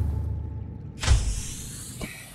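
A splash sounds as a body plunges into water.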